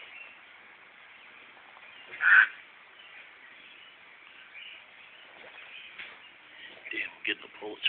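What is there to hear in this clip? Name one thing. A dog tugs and chews at something in rustling grass.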